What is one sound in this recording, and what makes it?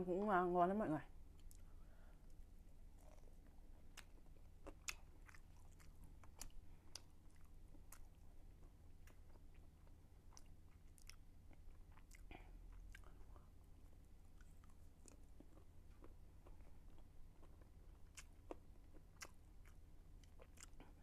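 A young woman chews food with soft, wet smacking sounds.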